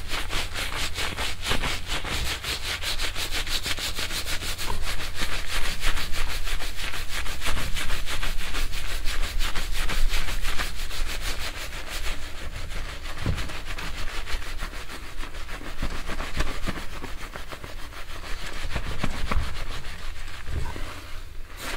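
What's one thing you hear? Thin metal wires scratch and rustle through hair close to a microphone.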